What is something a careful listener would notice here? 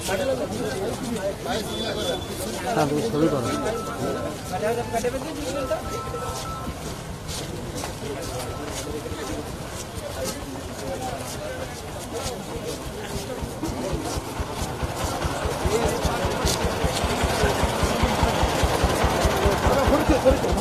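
A crowd of people murmurs outdoors.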